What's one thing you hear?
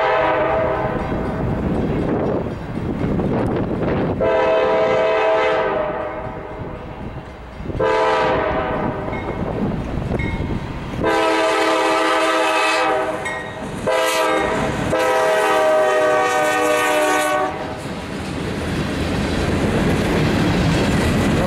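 A freight train rumbles and clatters along the rails.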